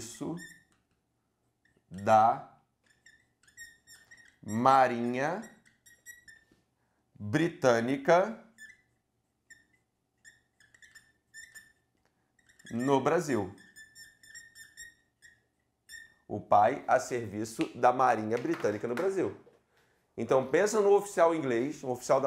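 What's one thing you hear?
A man speaks clearly and calmly in short bursts, close by, with pauses between phrases.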